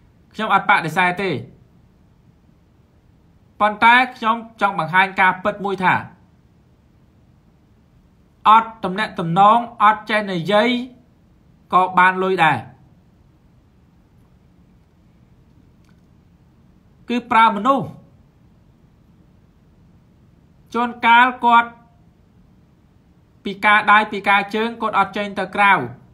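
A young man speaks calmly in short phrases with pauses, heard through a microphone on an online call.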